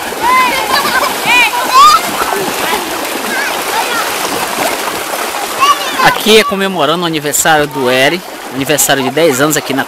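Children splash through shallow water.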